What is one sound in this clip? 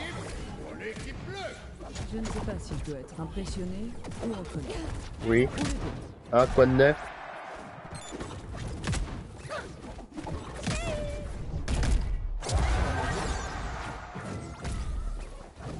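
Cartoonish game fighters clash with punchy hit and blast effects.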